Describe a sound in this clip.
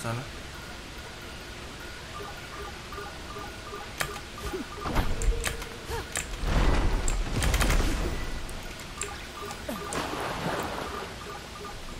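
Water rushes down a waterfall.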